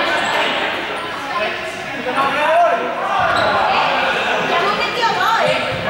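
Children shout and chatter with high voices in a large echoing hall.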